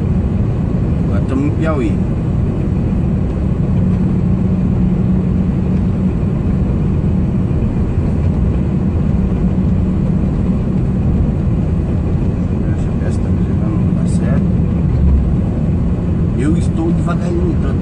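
A man talks near a microphone.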